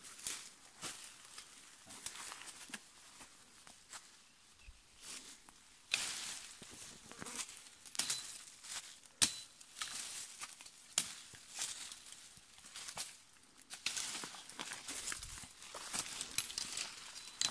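Leaves rustle and twigs snap close by.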